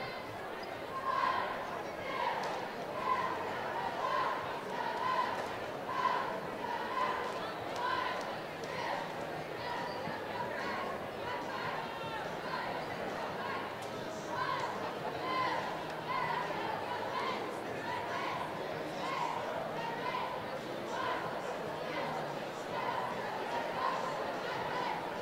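Young women chant a cheer in unison, loud and rhythmic, in a large echoing hall.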